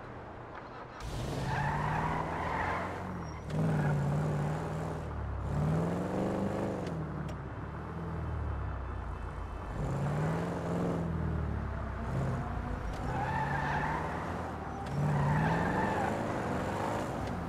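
A V8 muscle car engine revs and pulls away.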